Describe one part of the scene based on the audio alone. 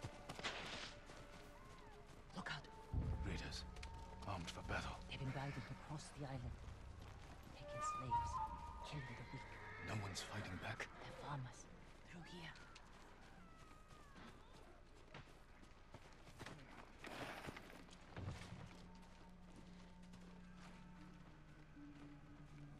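Soft footsteps rustle through grass and undergrowth.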